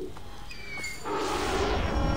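A deep whoosh swells.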